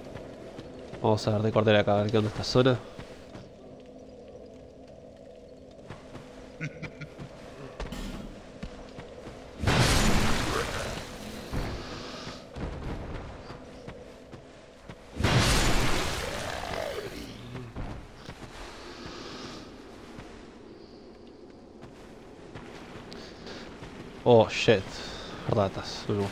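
Armoured footsteps crunch over rough ground.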